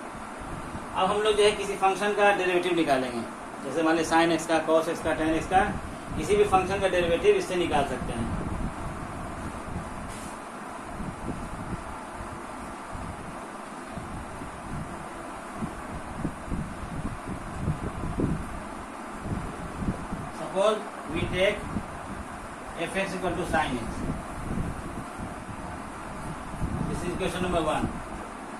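An elderly man speaks calmly, explaining, close by.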